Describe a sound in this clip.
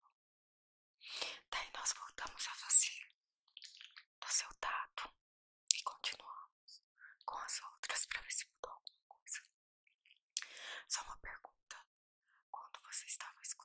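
A young woman whispers softly and close to a microphone.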